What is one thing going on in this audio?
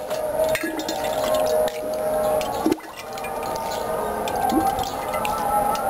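A ladle clinks and scrapes inside a glass jar.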